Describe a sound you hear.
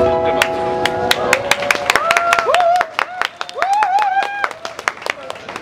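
An acoustic guitar is strummed through loudspeakers.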